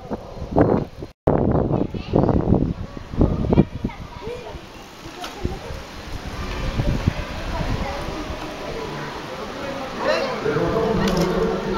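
Bicycle tyres roll over smooth pavement.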